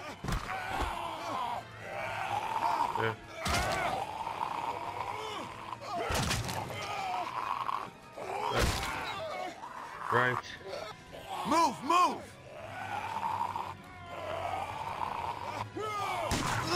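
A snarling zombie growls and groans up close.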